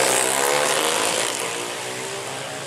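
A motorcycle engine roars past at high speed.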